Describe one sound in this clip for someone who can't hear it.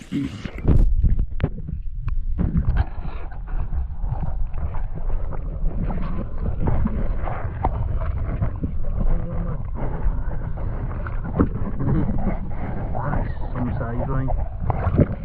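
Muffled underwater gurgling and rumbling goes on steadily.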